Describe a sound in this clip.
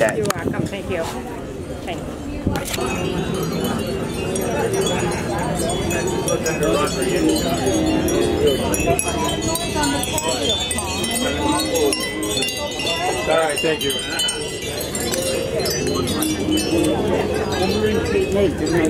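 A crowd of adults chatters nearby outdoors.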